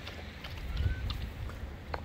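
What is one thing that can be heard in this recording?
A dog laps water.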